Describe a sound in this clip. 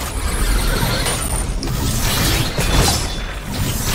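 Electricity crackles and zaps sharply.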